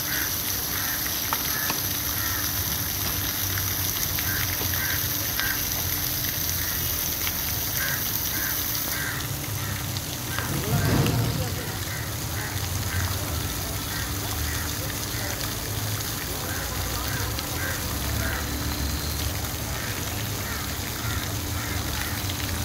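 Water sprays and patters steadily onto a pool's surface outdoors.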